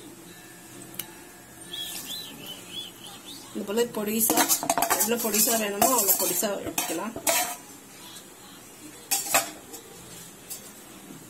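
A metal spoon clinks and scrapes against a pan.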